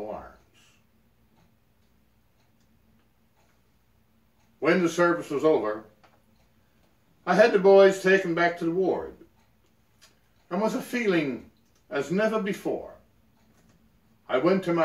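An elderly man reads aloud calmly and close by, pausing between phrases.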